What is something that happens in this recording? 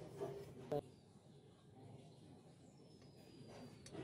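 Metal hex keys jingle and clink together.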